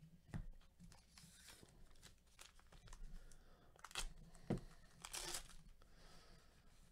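A foil wrapper crinkles in the hands.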